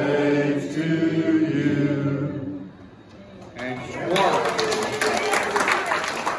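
Elderly men and women chat nearby.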